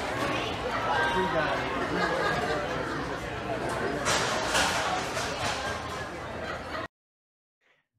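A large crowd chatters and murmurs in a busy, echoing room.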